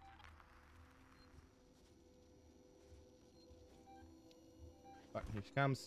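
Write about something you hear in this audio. A motion tracker beeps in short, regular pings.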